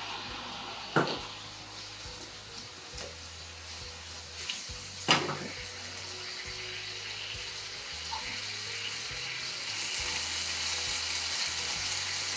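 Chopsticks tap against a pan.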